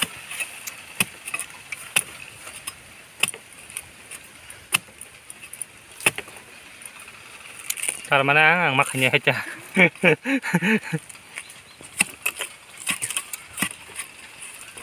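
A knife knocks and scrapes against bamboo.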